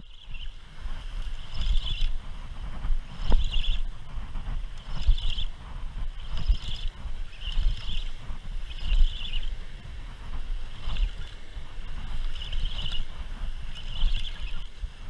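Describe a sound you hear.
A spinning fishing reel whirs as its handle is cranked by hand.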